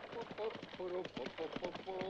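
Cart wheels rattle on a dirt track.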